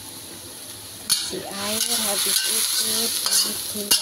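A spatula scrapes and stirs against a metal pan.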